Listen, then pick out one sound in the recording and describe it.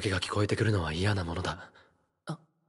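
A man speaks calmly and sternly, close up.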